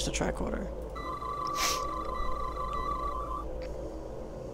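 A handheld scanner chirps with a rapid run of electronic beeps.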